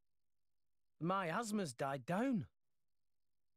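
A young man speaks with excitement.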